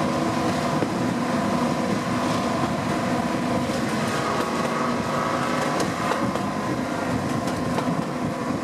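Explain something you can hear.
Train wheels clatter and rumble on the rails.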